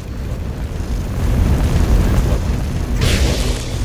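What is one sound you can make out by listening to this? Game combat sounds of blows and impacts rumble loudly.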